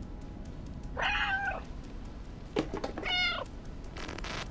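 A cat meows twice, close by.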